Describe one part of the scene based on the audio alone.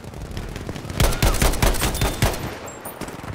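Gunshots crack loudly in quick succession.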